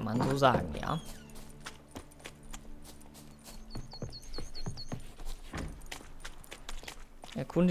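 Footsteps tread on soft ground.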